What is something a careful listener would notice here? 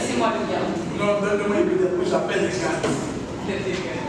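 A boy speaks loudly with animation in an echoing room.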